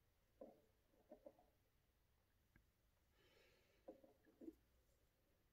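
A small plastic figure knocks lightly on a hard tabletop.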